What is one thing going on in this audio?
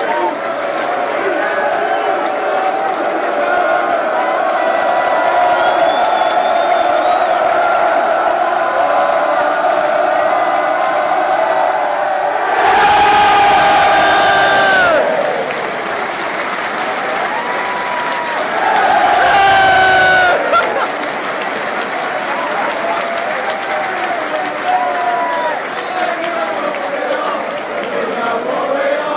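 A large stadium crowd sings and chants together loudly.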